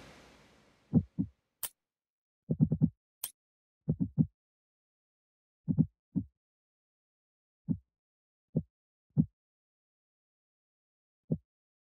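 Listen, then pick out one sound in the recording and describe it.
Short interface clicks tick now and then.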